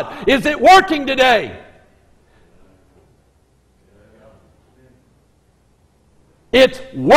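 A middle-aged man preaches forcefully through a microphone, with long pauses.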